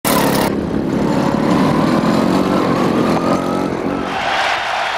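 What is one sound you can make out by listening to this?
A kart engine roars past at high speed.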